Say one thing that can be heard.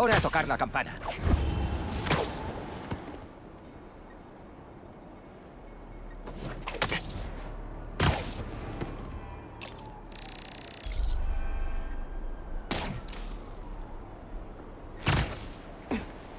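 Web lines zip and whoosh through the air in quick bursts.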